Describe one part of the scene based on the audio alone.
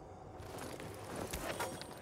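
A backpack rustles as it is picked up.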